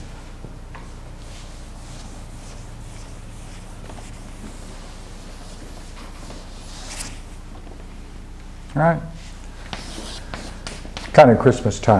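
Chalk scrapes and taps on a blackboard.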